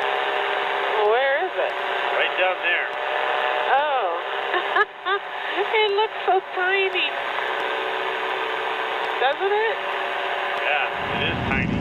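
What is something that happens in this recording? A man talks over a headset intercom.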